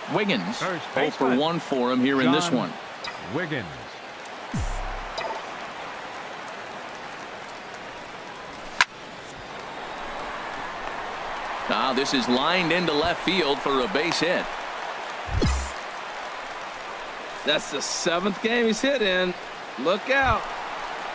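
A stadium crowd murmurs and cheers.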